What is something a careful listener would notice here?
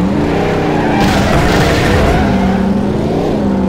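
Tyres screech as a car skids through a turn.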